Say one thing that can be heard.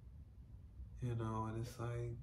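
A young man sings a sustained note close by.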